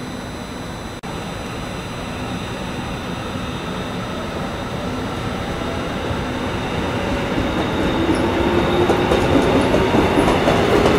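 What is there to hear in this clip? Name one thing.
An electric train pulls away, its rumble and whine growing louder.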